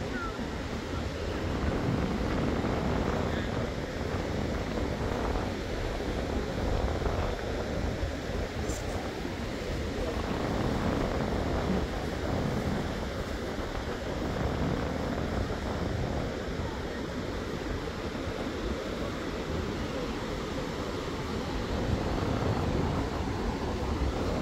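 Waves wash steadily onto a beach.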